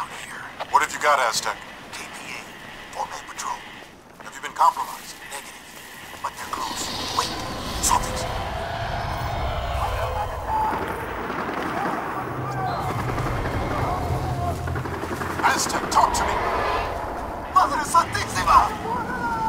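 Footsteps crunch over dirt and grass.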